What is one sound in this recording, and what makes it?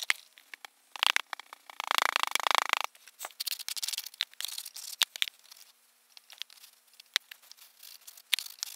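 A wooden stick scrapes across packed sand.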